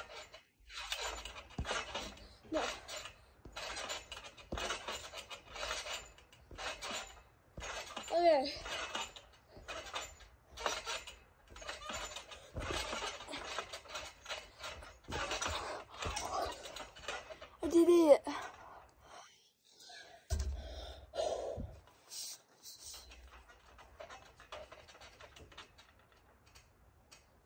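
A trampoline mat thumps and creaks as a girl bounces.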